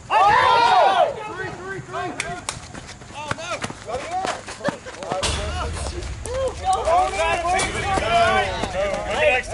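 Men shout and call out loudly nearby, outdoors.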